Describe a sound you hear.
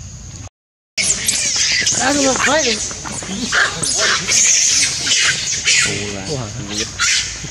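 Monkeys screech and chatter loudly outdoors.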